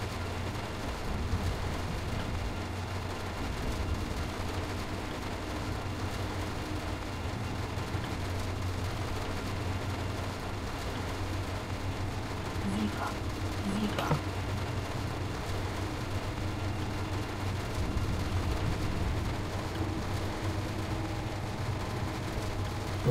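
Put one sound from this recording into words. Windscreen wipers sweep back and forth.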